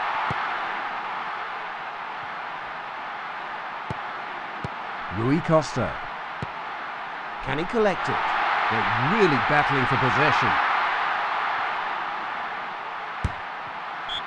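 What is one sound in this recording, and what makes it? A ball is kicked with dull thuds now and then.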